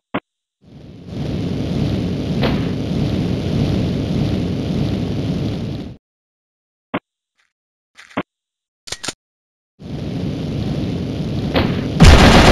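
A jetpack roars steadily in bursts.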